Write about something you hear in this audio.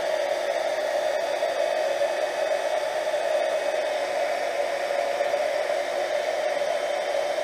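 A small rotary tool motor hums steadily close by.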